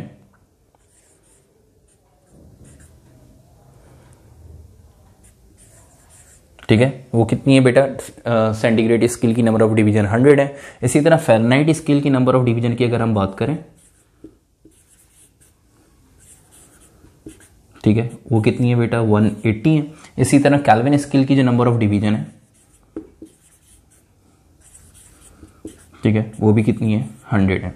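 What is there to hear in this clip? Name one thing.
A marker scratches on a whiteboard.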